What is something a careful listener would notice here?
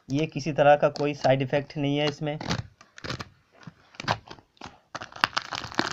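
A foil seal tears and rustles as it is peeled off a plastic tub.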